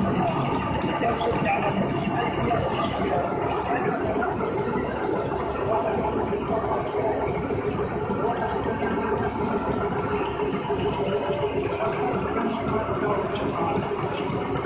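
Men talk nearby.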